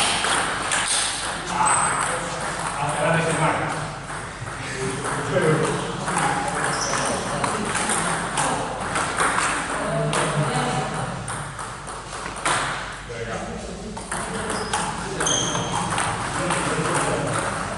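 A ping-pong ball clicks back and forth on paddles and a table.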